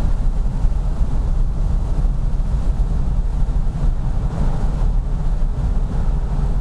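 Tyres roll on asphalt with a low rumble.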